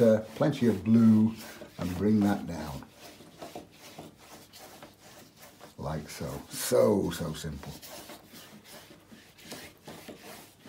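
A brush sweeps softly across paper.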